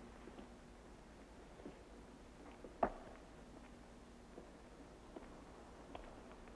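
A person moves about, with soft knocks and bumps nearby.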